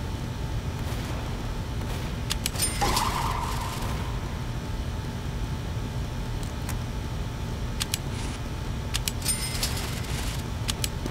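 Game menu buttons click several times.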